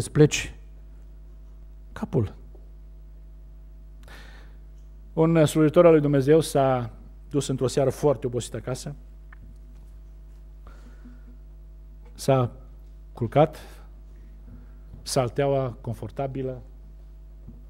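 A middle-aged man speaks with emotion into a microphone, pausing often.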